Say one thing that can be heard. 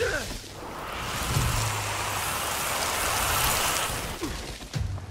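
Electric sparks crackle and hiss steadily.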